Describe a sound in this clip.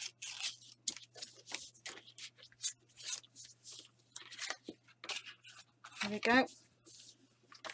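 Paper rustles and crinkles as it is folded and smoothed by hand.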